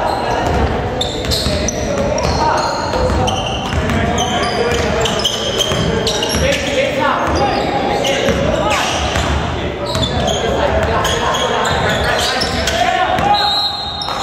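Sneakers squeak sharply on a wooden floor in a large echoing hall.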